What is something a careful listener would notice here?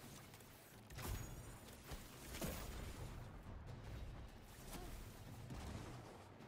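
Explosions boom with a low rumble.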